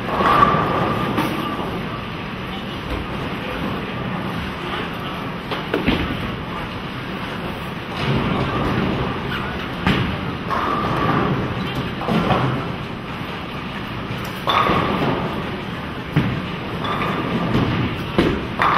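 Bowling pins clatter from nearby lanes in a large echoing hall.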